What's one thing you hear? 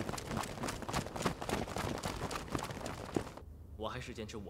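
Many boots march quickly on dry ground.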